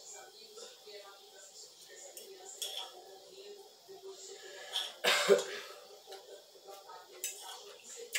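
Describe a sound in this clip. A fork scrapes against a plate.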